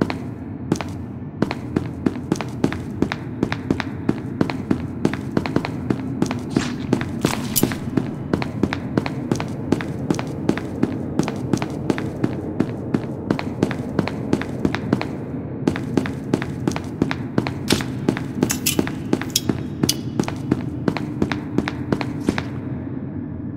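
Quick footsteps tap on a hard tiled floor.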